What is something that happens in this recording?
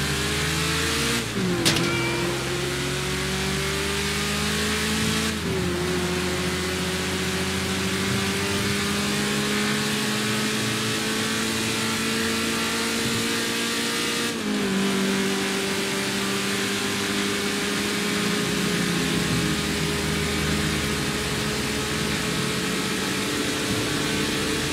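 Tyres hiss on the road.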